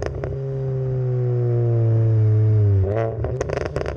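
A car engine roars loudly from the exhaust, its pitch slowly falling.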